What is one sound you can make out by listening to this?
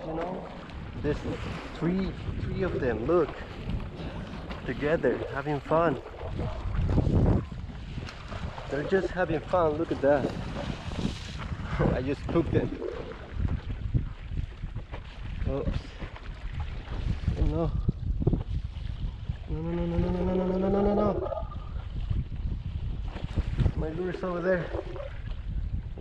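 Small waves slosh and splash against a boat's hull.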